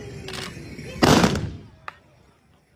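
A line of riders fires muzzle-loading muskets in one booming volley.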